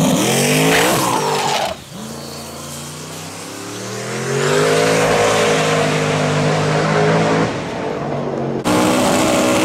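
A turbocharged V8 drag car accelerates at full throttle down the strip and fades into the distance.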